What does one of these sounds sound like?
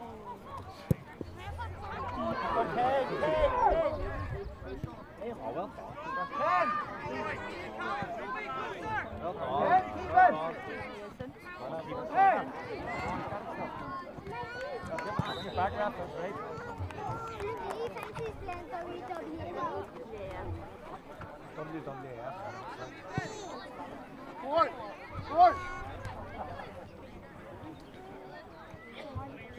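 Men and children shout and call out across an open outdoor pitch.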